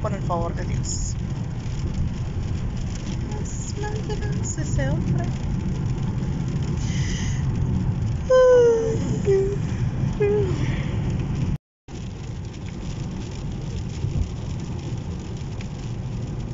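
A car drives steadily along a wet road, with a low rumble.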